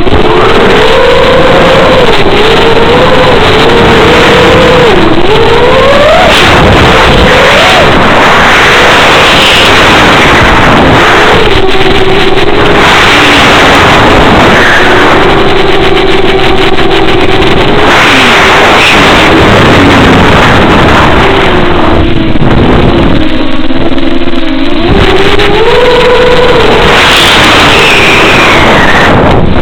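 Wind rushes loudly past a small model plane.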